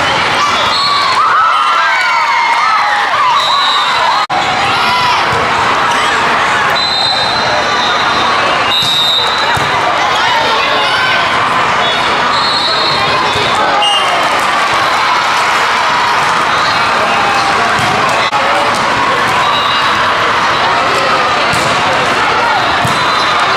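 Shoes squeak sharply on a hard court floor.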